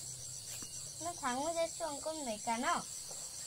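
A young boy asks something with animation, close by.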